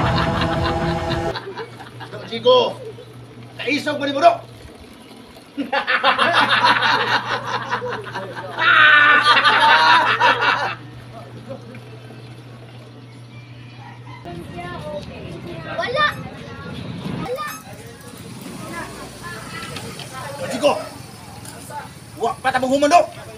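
Men argue loudly outdoors, shouting over one another.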